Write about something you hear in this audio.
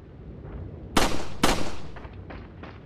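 A pistol fires two loud gunshots.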